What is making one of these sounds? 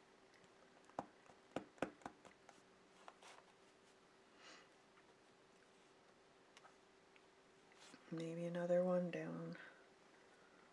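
Paper rustles and taps as hands handle a card.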